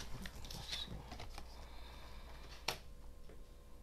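A card slides onto a hard table with a soft tap.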